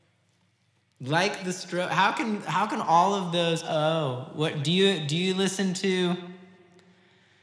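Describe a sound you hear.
A man talks casually into a microphone.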